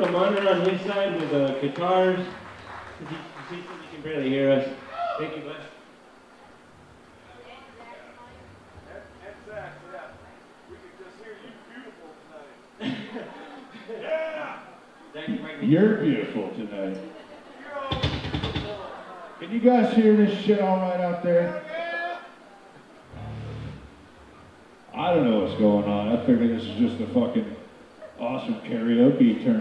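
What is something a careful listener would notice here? A man talks into a microphone through loudspeakers, heard in a large echoing hall.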